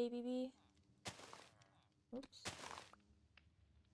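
A block crunches as it breaks.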